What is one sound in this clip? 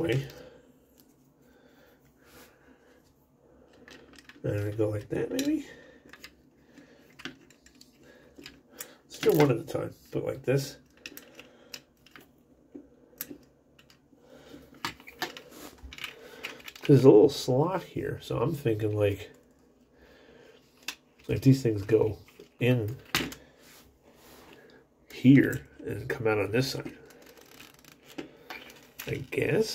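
Small plastic toy parts click and snap together.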